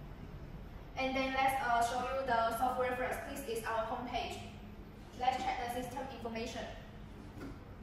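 A young woman speaks calmly and clearly to a listener nearby.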